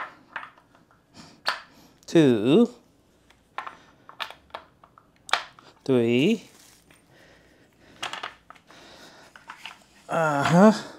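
Plastic parts click and knock together.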